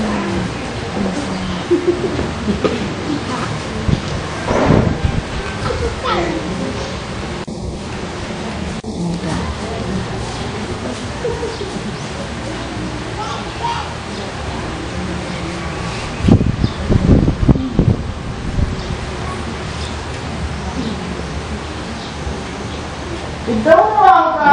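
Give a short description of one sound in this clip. Several men talk nearby, with voices murmuring.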